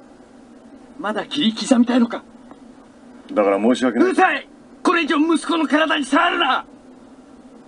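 A man speaks tensely and close up, in short bursts.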